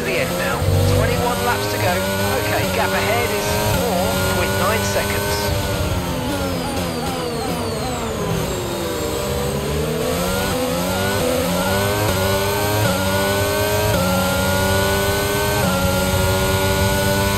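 A racing car engine screams at high revs, dropping in pitch while slowing and then climbing again through quick gear changes.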